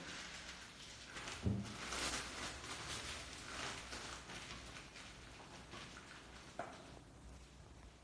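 A piping bag crinkles as it is squeezed and shaken.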